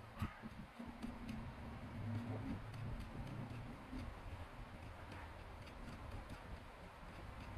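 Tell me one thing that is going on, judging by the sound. A metal blade scrapes and taps against packed sand.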